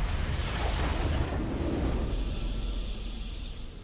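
A triumphant victory fanfare swells.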